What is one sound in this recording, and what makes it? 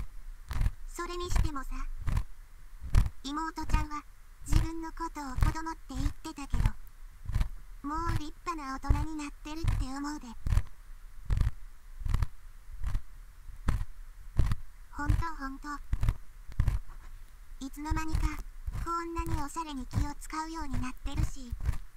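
A young woman speaks softly and cheerfully, close by.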